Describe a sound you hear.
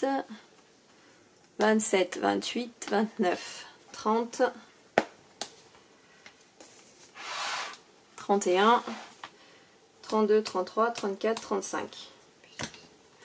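Stiff paper rustles and flaps as cards are folded open.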